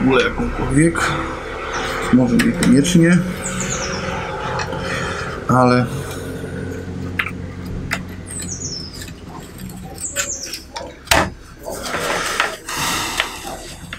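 Plastic parts click and rattle as they are handled and fitted together.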